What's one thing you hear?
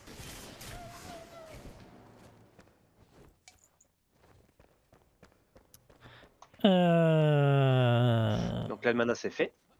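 A magic spell crackles and whooshes in short bursts.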